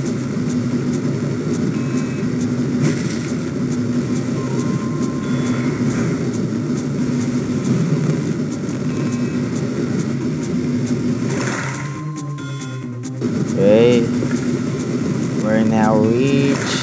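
Cheerful game music plays steadily.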